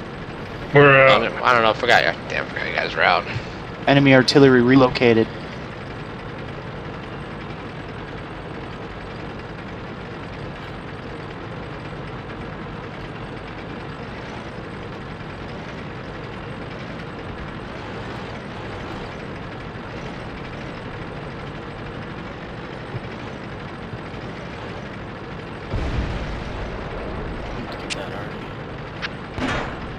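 A tank engine rumbles steadily as the tank drives across open ground.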